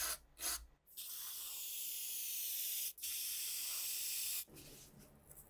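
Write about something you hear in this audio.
A spray paint can hisses.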